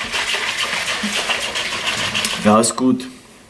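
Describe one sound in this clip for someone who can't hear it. A liquid sloshes in a shaker bottle.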